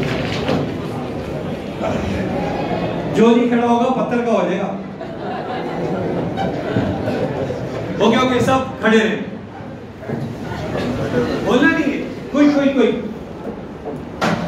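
An elderly man speaks into a microphone over loudspeakers in an echoing hall.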